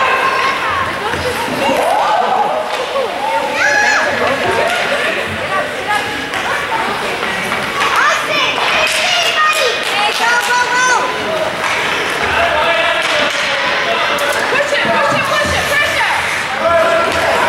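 Young children shout and call out excitedly in a large echoing hall.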